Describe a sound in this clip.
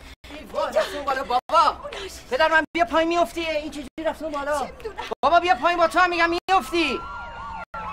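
A woman shouts in distress nearby.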